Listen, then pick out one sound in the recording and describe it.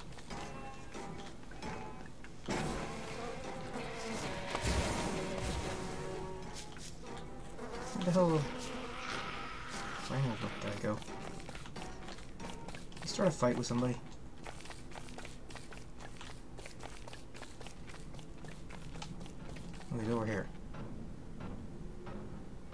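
Quick footsteps patter across the ground.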